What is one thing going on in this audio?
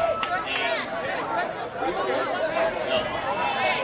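Young men cheer and shout to each other outdoors.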